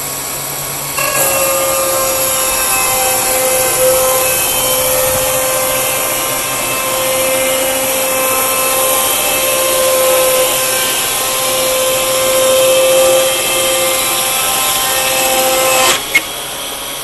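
A band sawmill blade cuts through a log with a whine.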